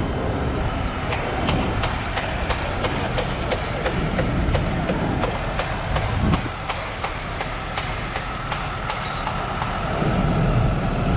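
Footsteps tap steadily on stone paving.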